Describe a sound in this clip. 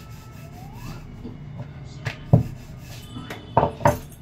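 A rolling pin knocks and rolls on a board.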